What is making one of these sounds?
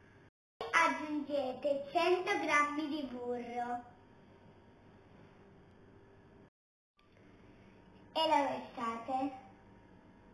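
A young girl talks cheerfully close by.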